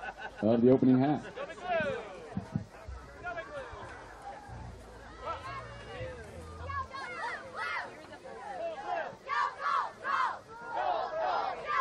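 Teenage boys shout and cheer excitedly nearby, outdoors.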